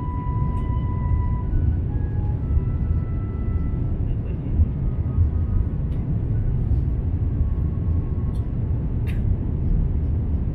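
Jet engines roar steadily in a low, constant rumble.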